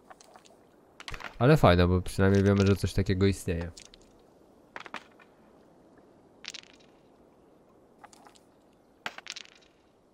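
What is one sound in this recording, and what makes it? Dice rattle and clatter into a wooden bowl.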